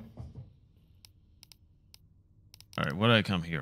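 Soft electronic menu clicks tick a few times.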